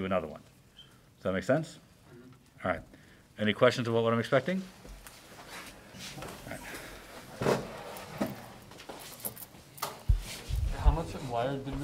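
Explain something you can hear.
A man speaks calmly close by, in short phrases.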